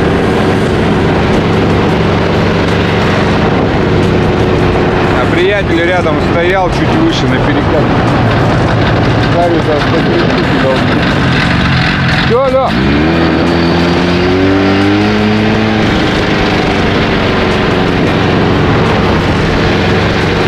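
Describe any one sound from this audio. A snowmobile engine drones steadily up close and revs up.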